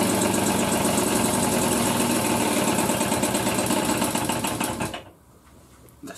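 A small moped engine runs loudly and then cuts out.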